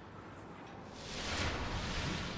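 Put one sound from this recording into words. An energy blast roars loudly.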